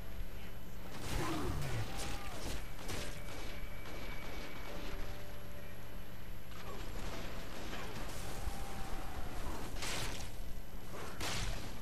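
Electricity crackles and buzzes in sharp bursts.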